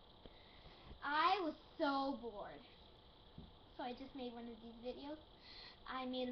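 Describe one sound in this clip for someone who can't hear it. A young girl sings close to a microphone.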